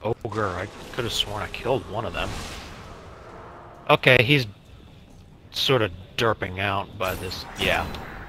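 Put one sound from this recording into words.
Energy weapons fire in sharp bursts.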